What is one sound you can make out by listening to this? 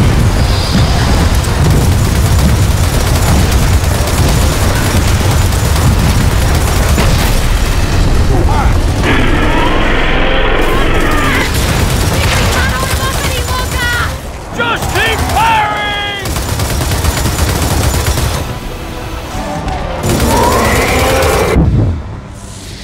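A mounted machine gun fires in rapid, heavy bursts.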